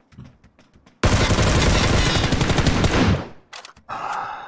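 Gunfire rattles in a rapid burst.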